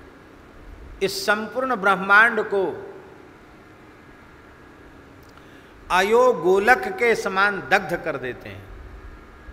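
An elderly man speaks slowly and expressively into a close microphone, with long pauses.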